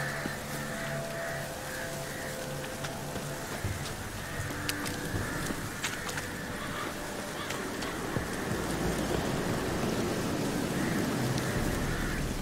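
Footsteps crunch steadily over soft ground and wooden boards.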